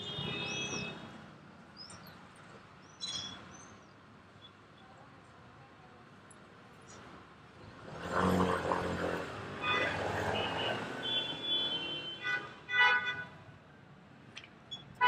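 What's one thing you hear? Traffic hums along a city street.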